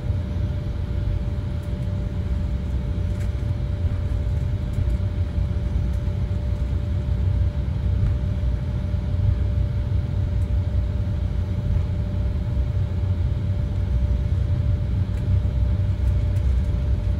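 A jet airliner's engines roar steadily from inside the cabin as the plane taxis.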